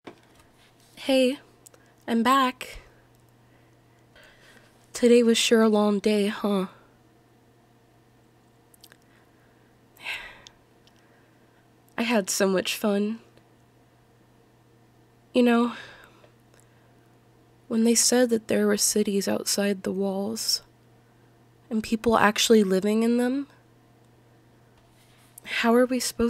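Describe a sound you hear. A young man speaks softly and closely into a microphone, in short phrases with pauses.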